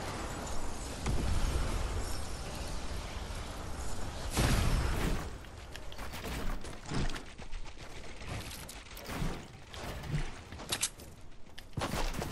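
Footsteps crunch over sand.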